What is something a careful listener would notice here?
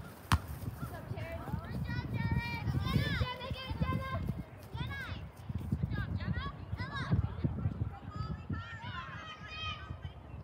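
Girls shout and call out across an open field.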